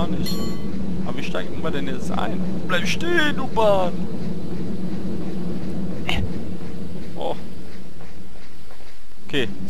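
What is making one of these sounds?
A cable car rumbles along on its rails close by.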